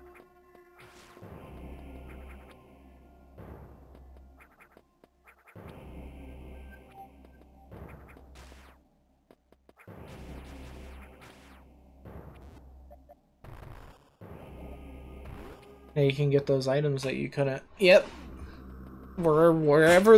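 Chiptune video game music plays in a short repeating loop.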